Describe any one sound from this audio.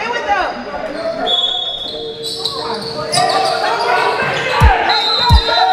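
Spectators chatter in the background.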